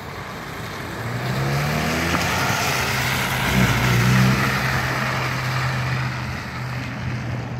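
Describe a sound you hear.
Tyres spin and splash through wet mud.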